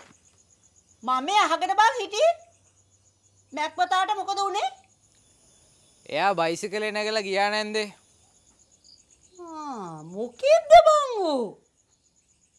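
An elderly woman speaks with emotion in short bursts.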